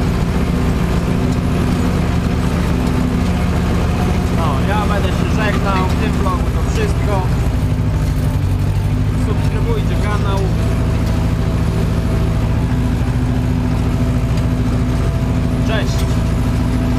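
A tractor's implement rattles and clanks over soil.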